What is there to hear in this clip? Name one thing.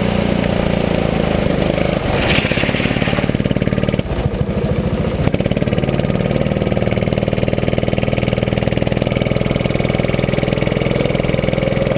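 A small kart engine buzzes loudly and steadily up close, its pitch rising and falling with the throttle.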